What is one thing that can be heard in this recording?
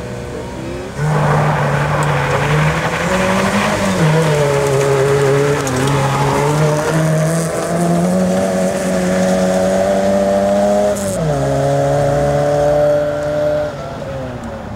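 A rally car engine revs hard and roars past close by.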